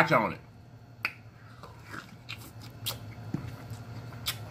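A man bites and chews food with wet, smacking sounds.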